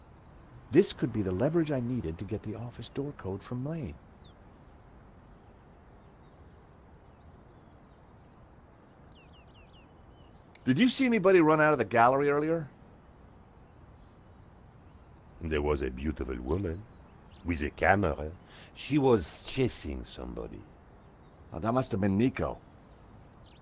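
A man speaks calmly, close to a microphone.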